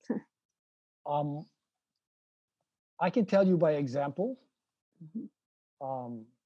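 An elderly man speaks slowly and calmly over an online call.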